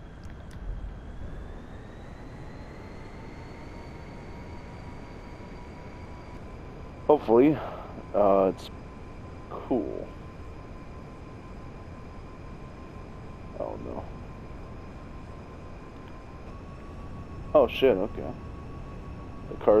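A hovering car hums steadily with a high, thin whine.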